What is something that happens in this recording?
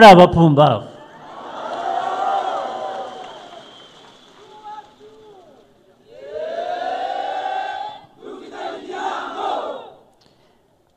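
A crowd cheers and calls out.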